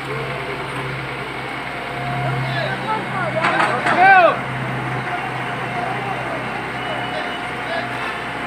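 A heavy excavator engine rumbles steadily in the distance.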